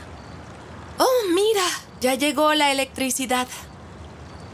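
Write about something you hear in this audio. A young woman speaks nearby with feeling.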